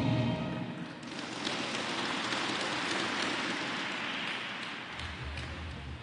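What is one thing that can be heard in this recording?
A crowd claps and cheers in a large echoing hall.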